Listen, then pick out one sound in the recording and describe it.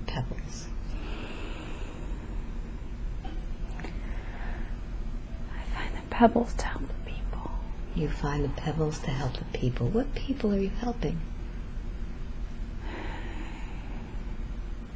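A woman breathes slowly and deeply in her sleep.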